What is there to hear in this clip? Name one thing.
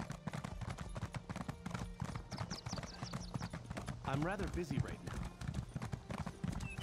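A horse's hooves clop quickly on stone.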